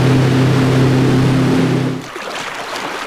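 A motorboat engine drones steadily.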